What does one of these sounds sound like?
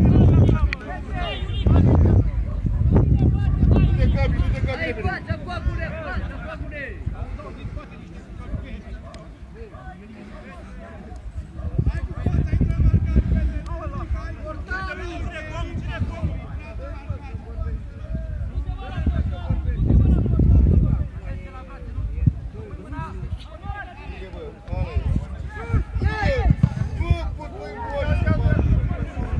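Men shout and call out across an open field in the distance.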